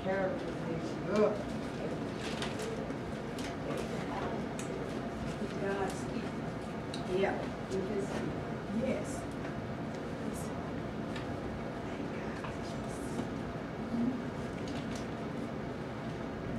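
A woman speaks in a room, a little way off.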